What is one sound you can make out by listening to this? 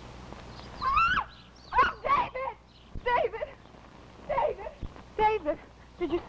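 A young woman talks nearby.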